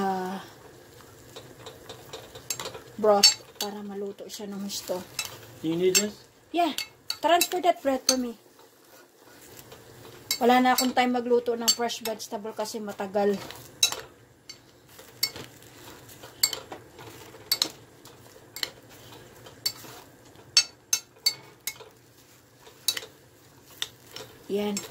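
A metal spoon clicks and scrapes against a pan while vegetables are stirred.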